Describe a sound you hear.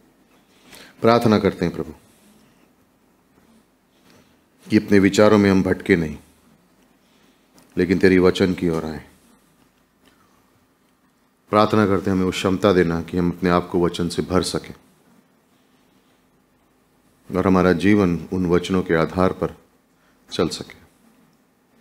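A man speaks slowly and earnestly into a microphone, in short phrases with pauses.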